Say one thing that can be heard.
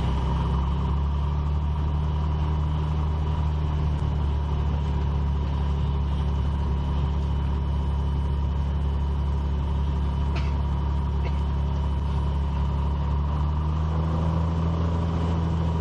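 A small propeller plane's engine drones steadily at low power, heard from inside the cockpit.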